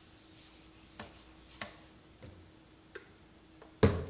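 A plastic bottle is handled and its cap clicks.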